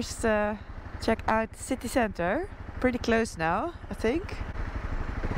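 A young woman speaks closely into a helmet microphone with animation.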